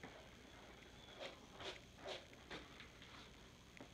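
A brush scrapes through a dog's fur.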